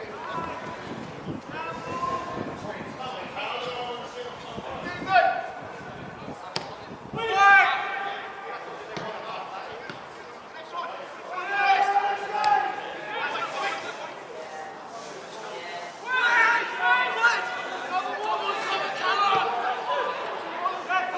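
Players shout to each other across an outdoor pitch.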